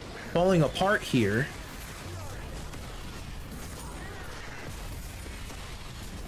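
Magic spells crackle and blast in a video game.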